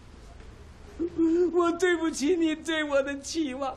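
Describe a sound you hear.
An elderly man speaks tearfully, his voice trembling.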